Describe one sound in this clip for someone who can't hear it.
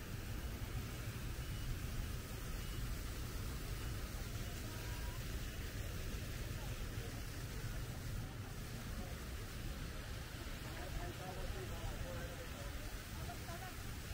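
A fountain splashes steadily nearby.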